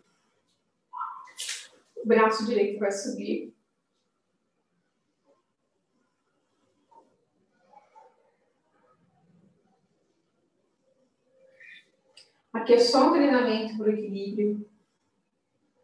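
A woman calmly gives instructions in short phrases.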